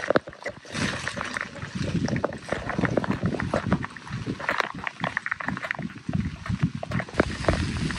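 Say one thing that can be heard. Gale-force wind gusts outdoors, buffeting the microphone.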